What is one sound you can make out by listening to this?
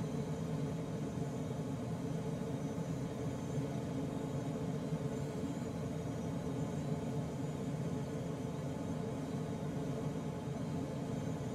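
Air rushes steadily past a glider's cockpit in flight.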